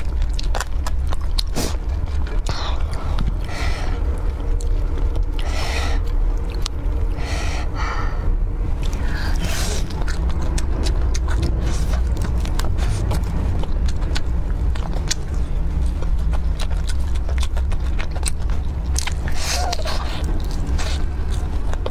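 A woman chews crispy food loudly and close to a microphone.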